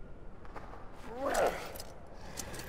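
A heavy swinging blow whooshes through the air.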